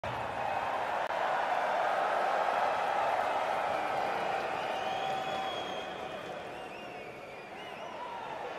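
A large arena crowd cheers and roars, echoing through the hall.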